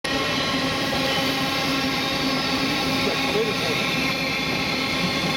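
Train wheels rumble and squeal over the rails.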